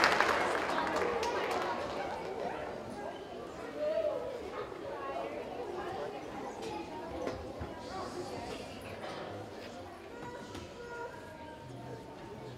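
Children chatter and murmur quietly on a stage.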